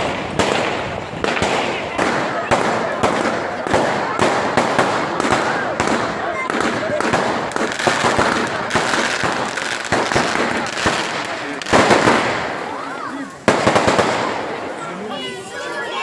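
Fireworks crackle and bang rapidly overhead.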